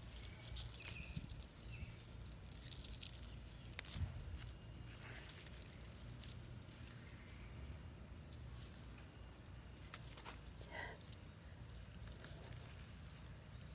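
Pea pods snap off their stems.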